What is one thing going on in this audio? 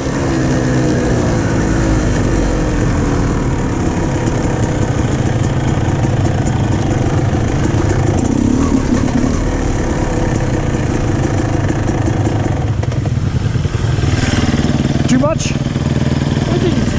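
A motorbike engine rumbles steadily up close.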